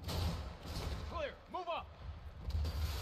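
A man shouts a command.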